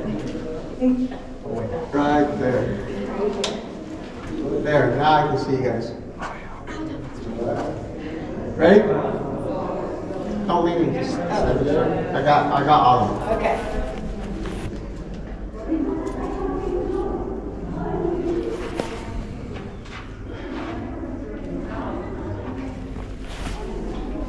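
A man talks nearby, calmly.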